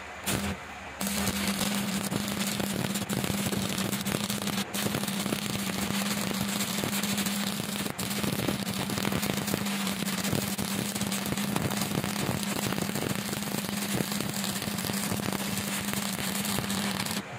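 An electric welding arc crackles and buzzes steadily.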